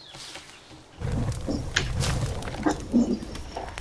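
An axe strikes a body with a heavy thud.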